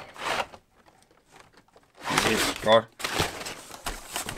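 Packing paper rustles and crinkles as it is pulled out.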